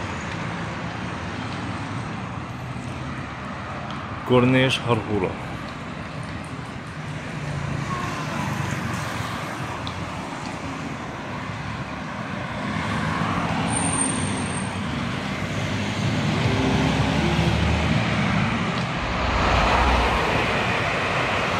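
Cars drive past on a nearby road, their tyres hissing steadily.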